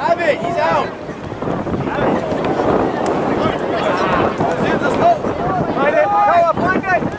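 Spectators shout and cheer outdoors.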